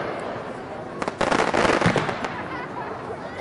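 Fireworks crackle and fizz after bursting.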